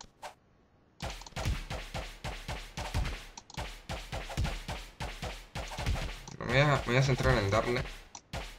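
Sword blows land in quick succession.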